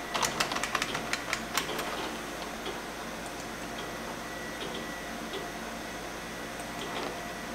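A computer monitor hums steadily.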